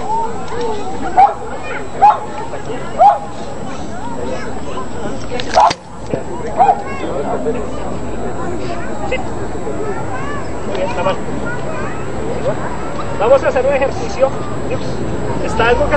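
A crowd of children and adults chatters outdoors in the distance.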